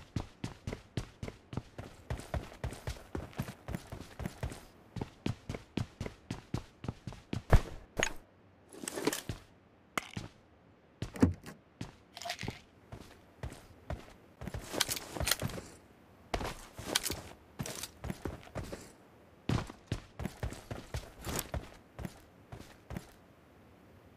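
Quick footsteps run steadily.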